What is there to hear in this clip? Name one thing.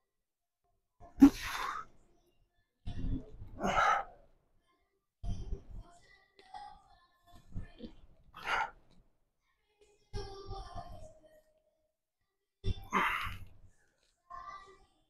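A man exhales and grunts sharply with each lift, close by.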